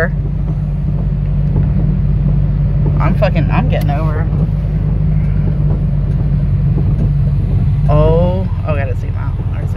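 Heavy rain patters on the car.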